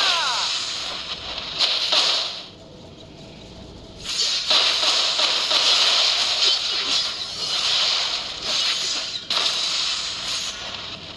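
Fiery spell blasts roar and crackle.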